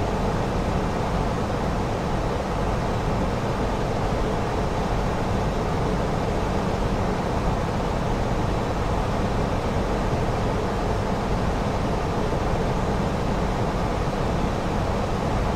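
A steady low roar of jet engines and rushing air fills the cabin.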